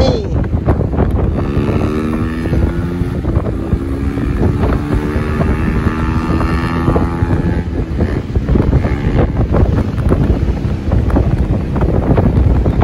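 Tyres roar on a paved road.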